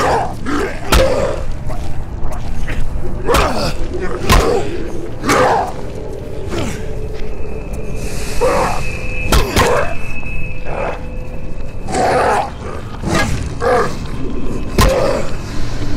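Heavy blows strike with sharp thuds again and again.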